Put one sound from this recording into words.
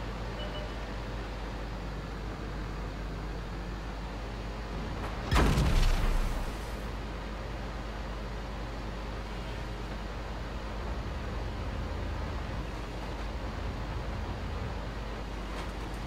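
A heavy tank engine rumbles steadily.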